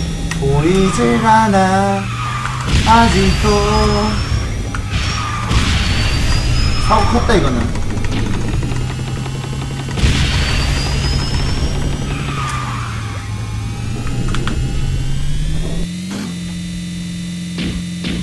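A racing game's engine hums steadily, rising in pitch near the end.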